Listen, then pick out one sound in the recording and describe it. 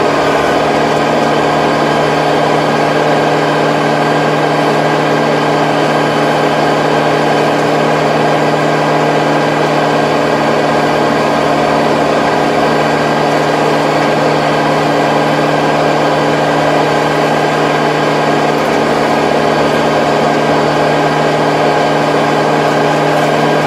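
A rotary tiller churns through soil with a rattling whir.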